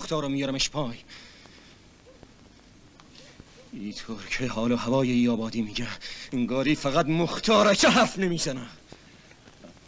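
A man speaks forcefully and tensely, close by.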